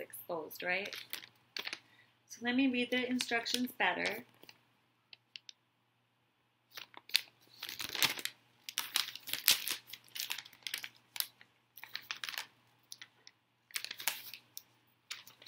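Paper rustles and crinkles as a sheet is handled.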